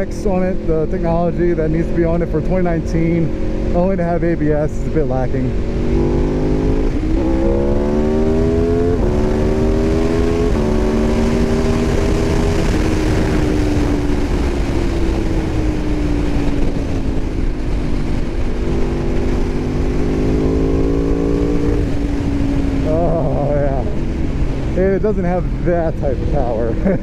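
Wind rushes loudly past a fast-moving rider.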